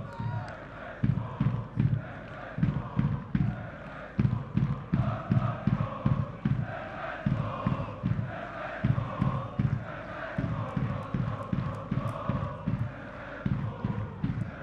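Drums beat steadily in a crowd.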